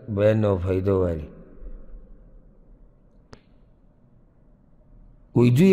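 A man speaks with emphasis into a microphone.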